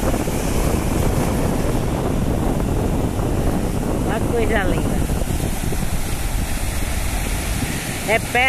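Waves break and wash up onto a beach.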